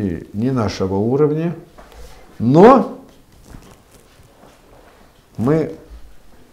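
An elderly man speaks nearby with animation, in short rising bursts.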